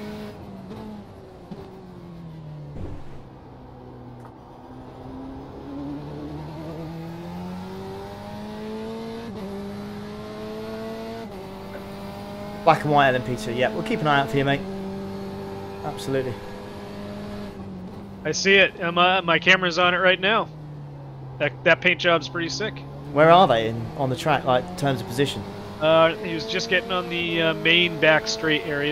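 A racing car engine whines steadily, rising and falling in pitch as it shifts gears.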